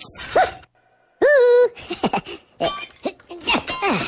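Glass cracks and shatters.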